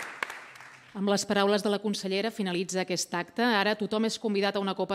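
A woman speaks calmly through a loudspeaker in a large echoing hall.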